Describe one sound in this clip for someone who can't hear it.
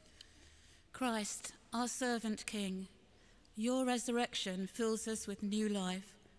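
An elderly woman reads aloud calmly through a microphone in a large echoing hall.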